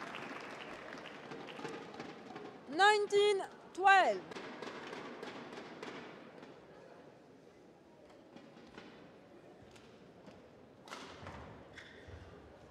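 A shuttlecock is struck with a racket in a large echoing hall.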